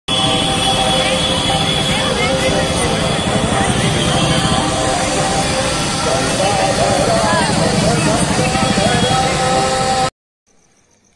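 A large crowd chatters and murmurs loudly outdoors.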